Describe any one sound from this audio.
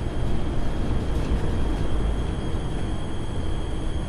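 Footsteps clank on metal stairs.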